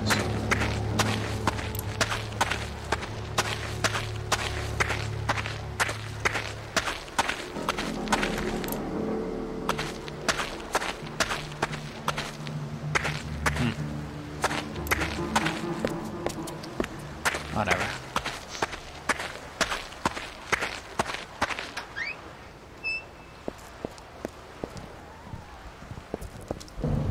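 Footsteps run quickly over rough ground.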